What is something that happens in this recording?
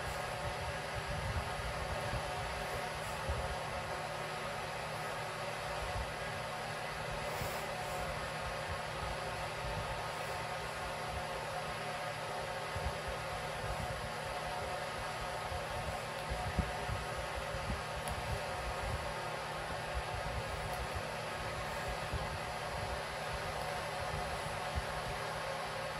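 Bedding rustles as a cat squirms and rolls.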